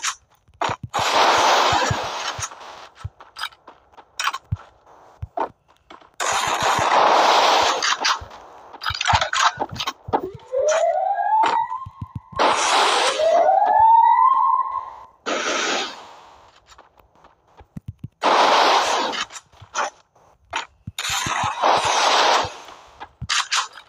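Ice walls burst up with a rushing, crunching roar.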